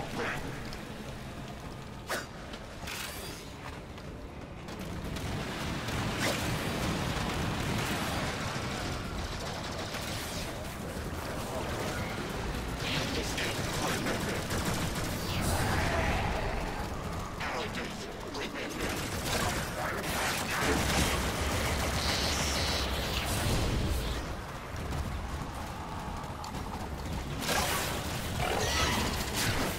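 Gunfire and explosions crackle and boom in quick bursts.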